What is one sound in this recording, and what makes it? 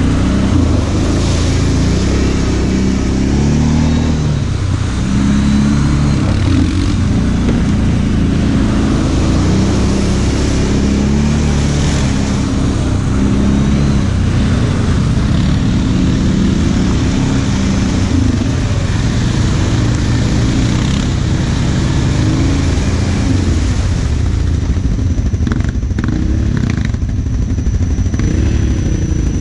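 An ATV engine drones and revs steadily up close.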